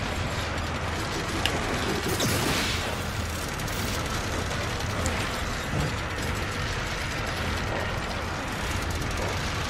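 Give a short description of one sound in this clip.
A crossbow fires a bolt with a sharp whoosh.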